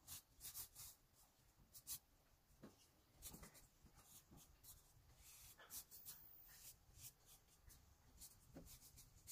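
A paintbrush swishes in short strokes across wall siding.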